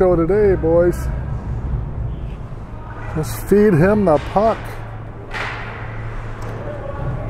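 Skates glide and scrape across the ice.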